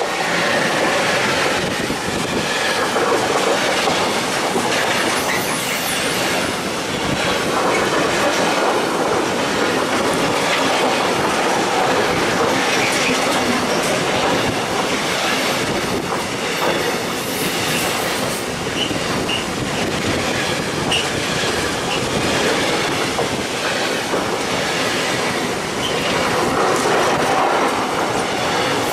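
A freight train rumbles past close by, its wheels clattering on the rails.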